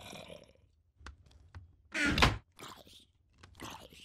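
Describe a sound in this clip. A wooden chest thuds shut.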